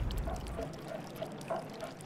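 Water drips into a plastic tub.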